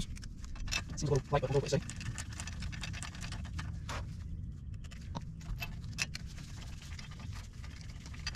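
Lug nuts clink and click against a metal wheel hub.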